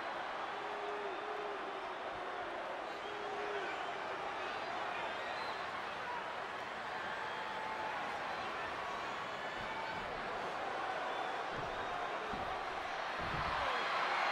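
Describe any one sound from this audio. A large crowd cheers and roars loudly throughout.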